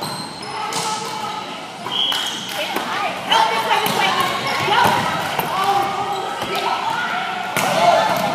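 Young people call out and chatter with animation across the gym.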